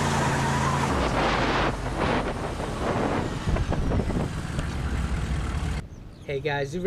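A truck drives off, its engine rumbling.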